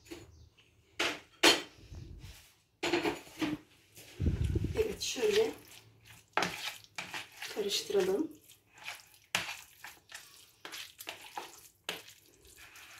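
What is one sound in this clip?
A metal fork clinks and scrapes against a ceramic bowl.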